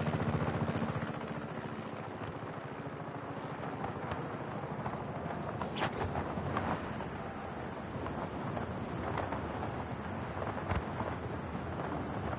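Wind rushes past during a fast glide through the air.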